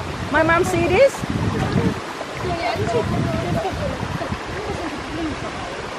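Bare feet splash and wade through shallow water.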